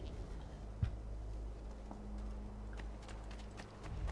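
Footsteps tread on a stone path.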